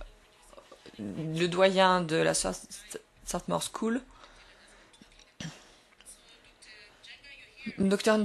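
A woman speaks through a microphone, pausing between phrases.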